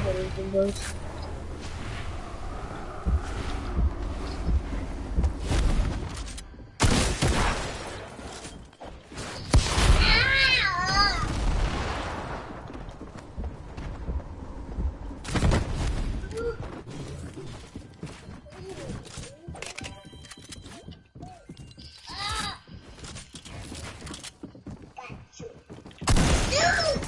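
Video game sound effects thump and clatter.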